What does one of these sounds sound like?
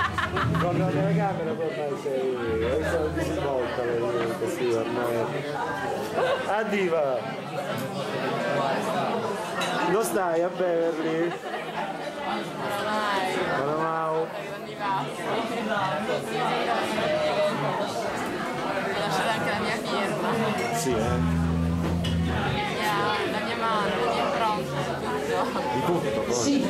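Several men and women talk loudly and with animation close by.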